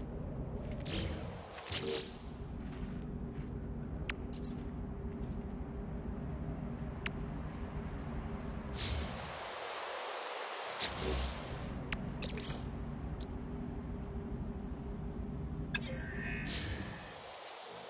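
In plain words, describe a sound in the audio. Game menu clicks sound in short, sharp blips.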